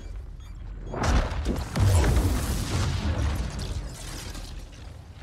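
A lightning bolt crashes down with a loud, roaring burst.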